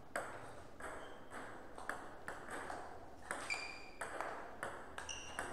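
A table tennis ball clicks rapidly back and forth off paddles and the table.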